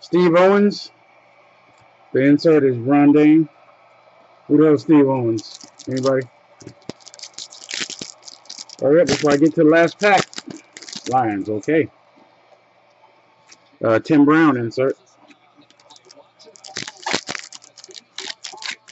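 Trading cards rustle and clack as they are handled.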